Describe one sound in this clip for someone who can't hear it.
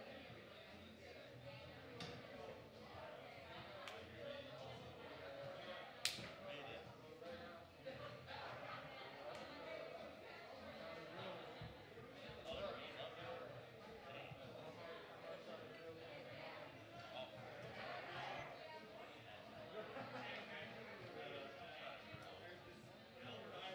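Men talk casually in a room.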